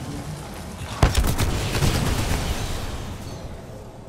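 A loud blast booms and rumbles away.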